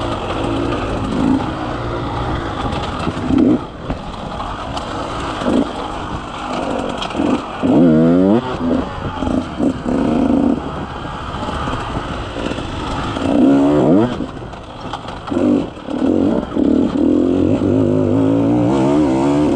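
Tyres crunch over dirt and sticks.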